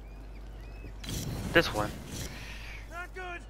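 Flames burst with a roaring whoosh.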